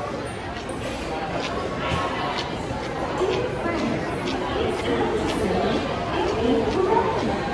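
A crowd chatters in a large echoing hall.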